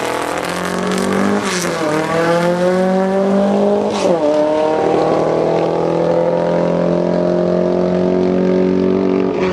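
A second car engine races away, fading into the distance.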